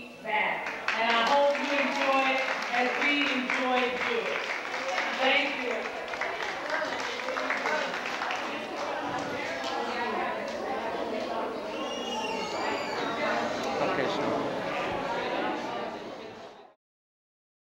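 A crowd of people chatter in a large echoing room.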